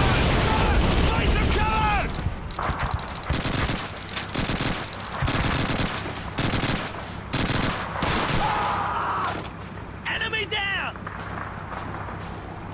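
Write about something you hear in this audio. Gunfire crackles in a noisy battle.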